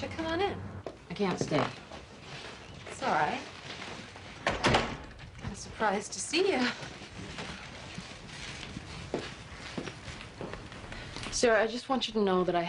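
A woman speaks with concern.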